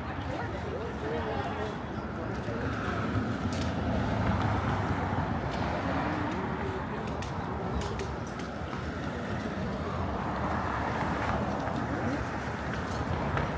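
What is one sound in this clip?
Cars drive past along a street.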